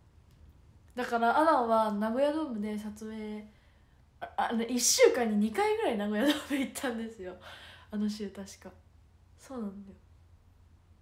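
A young girl talks close by, with animation.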